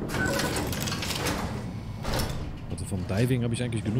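A heavy metal door slides open.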